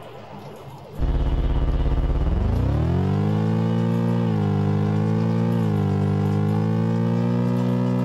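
An electronic engine buzz starts low, rises in pitch and then holds steady.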